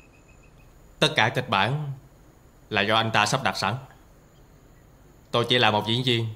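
A man speaks in a strained, pained voice.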